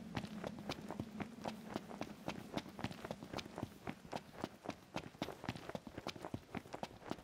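Footsteps crunch quickly over loose gravel.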